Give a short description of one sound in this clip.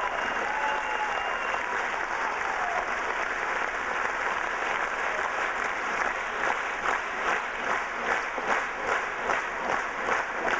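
Dancers' feet stamp on a wooden stage.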